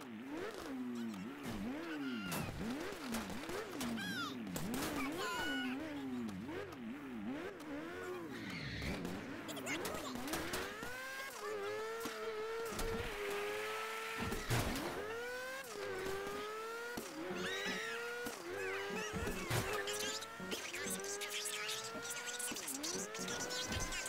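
A car engine revs hard, rising and falling in pitch as the gears change.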